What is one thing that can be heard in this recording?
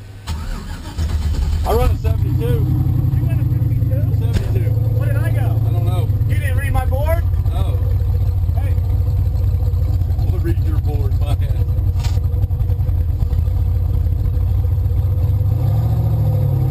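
A car engine idles with a deep, steady rumble from inside the car.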